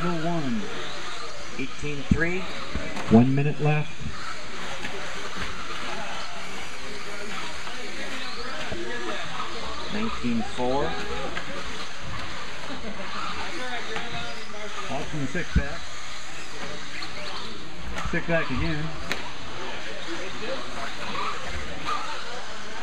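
Small electric racing cars whine as they speed around a dirt track.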